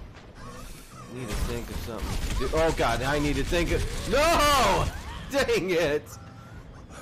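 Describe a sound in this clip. A man talks with animation into a nearby microphone.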